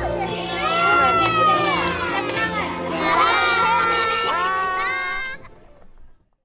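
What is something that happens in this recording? A crowd of children shout and cheer together.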